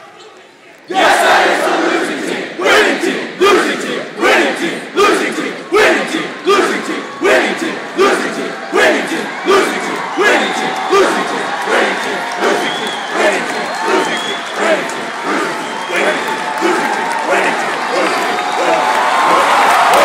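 A large crowd claps and chants in a steady rhythm.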